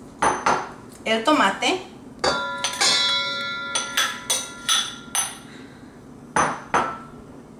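A metal spoon taps and scrapes against bowls.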